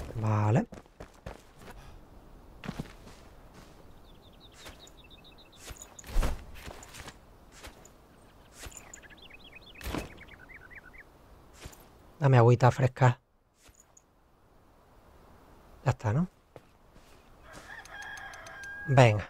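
A man speaks into a close microphone in short bursts.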